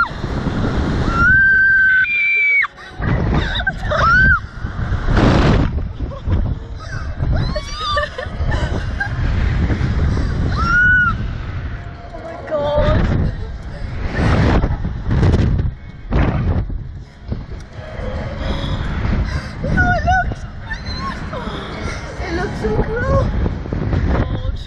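A teenage girl screams and shrieks on the ride.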